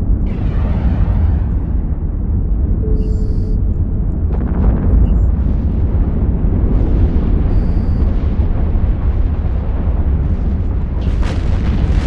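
Explosions rumble deeply and steadily in a space battle.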